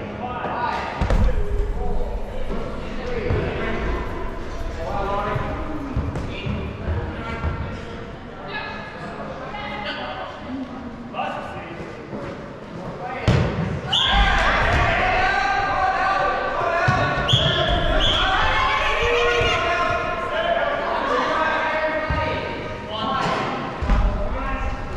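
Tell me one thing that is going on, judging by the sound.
A ball thuds against bodies and the floor.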